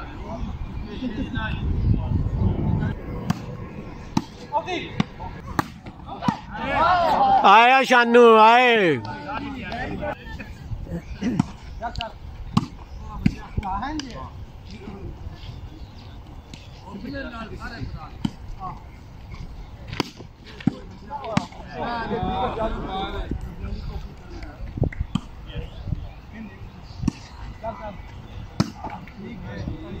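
A volleyball is hit with sharp slaps, again and again.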